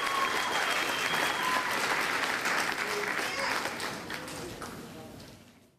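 A young woman sings into a microphone through loudspeakers in a large hall.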